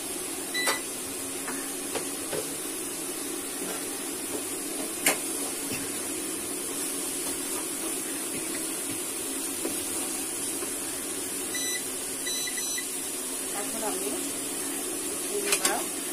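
Sauce simmers and sizzles in a pot.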